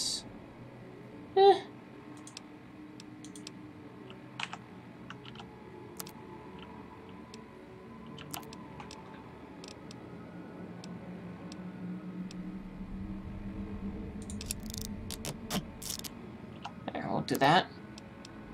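Short electronic clicks sound as menu items are selected.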